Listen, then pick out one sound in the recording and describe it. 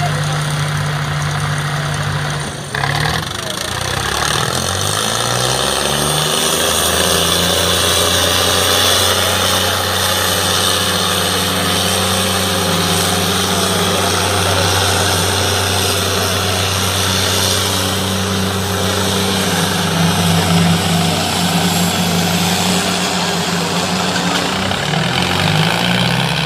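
Tractor engines roar loudly under heavy strain.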